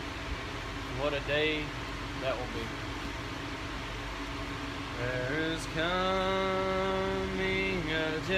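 A young man speaks nearby, reading aloud.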